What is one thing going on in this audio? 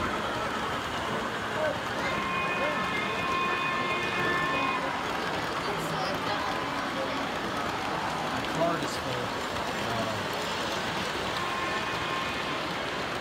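Model train wheels rumble and clatter steadily along the tracks.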